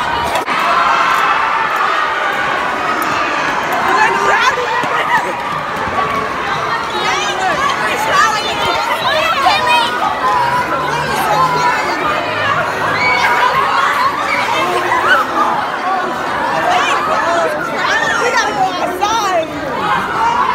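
A large crowd of young people shouts and screams excitedly in an echoing hall.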